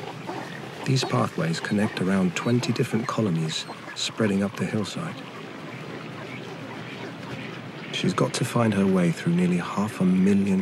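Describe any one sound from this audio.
A large colony of penguins brays and squawks loudly.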